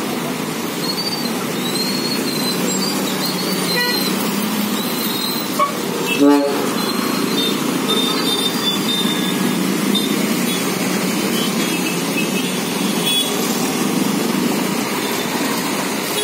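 Motorcycle engines drone close by.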